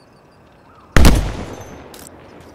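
A rifle fires a single loud shot that echoes.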